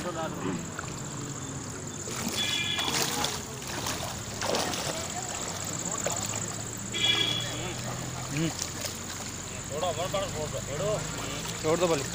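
Water splashes as men wade through a shallow stream.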